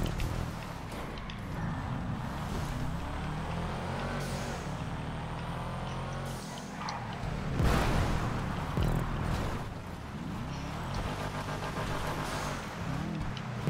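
Tyres skid and scrape on loose dirt.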